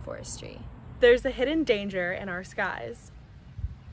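A second young woman speaks cheerfully, close by.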